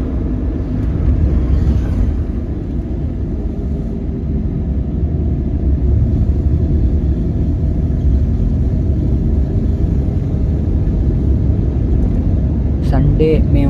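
A car rumbles steadily as it drives along a road.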